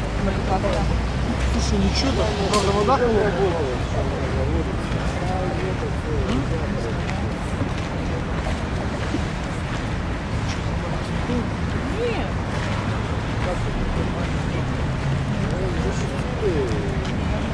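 River water laps gently nearby.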